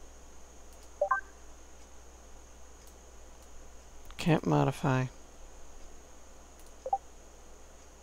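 A short game menu chime sounds as selections are made.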